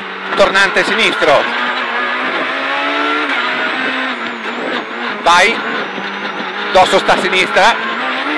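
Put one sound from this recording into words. A rally car engine roars and revs hard, heard from inside the cabin.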